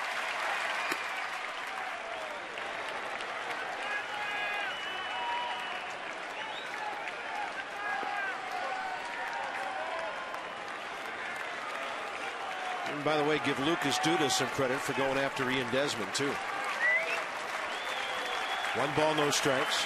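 A large stadium crowd murmurs and chatters.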